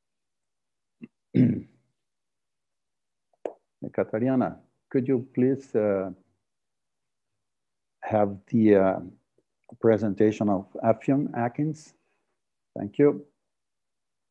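A middle-aged man speaks calmly through an online call, in short bursts with pauses.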